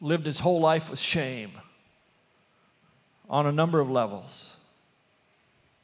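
An older man speaks calmly through a microphone, pausing between phrases.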